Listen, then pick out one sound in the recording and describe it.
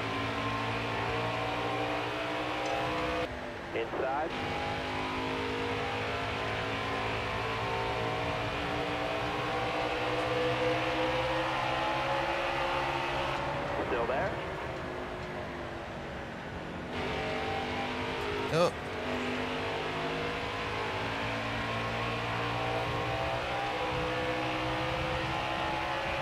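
A race car engine roars steadily, shifting pitch as the car speeds up and slows.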